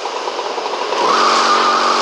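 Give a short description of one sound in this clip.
A motorcycle engine revs.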